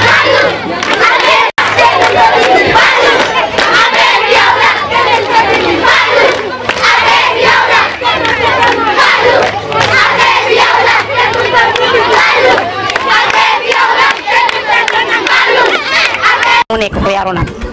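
A large crowd of children cheers and shouts loudly.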